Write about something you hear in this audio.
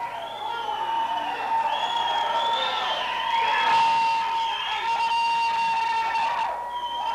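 An electric guitar plays loudly and distorted through an amplifier.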